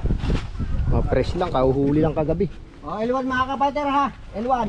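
Men call out to each other loudly outdoors.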